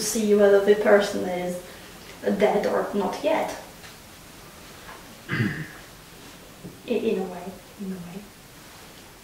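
A young woman speaks calmly close by, in short phrases with pauses.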